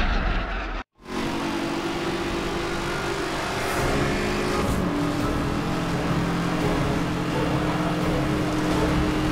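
A car engine roars steadily at high speed, its pitch slowly rising.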